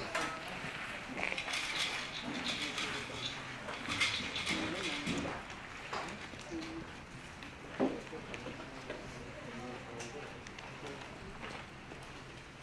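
People talk quietly in the distance.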